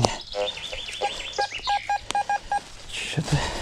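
A metal detector beeps in short repeated tones.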